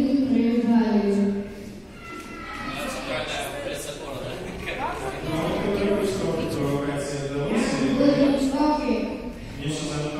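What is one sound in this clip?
A boy speaks into a microphone, heard through a loudspeaker.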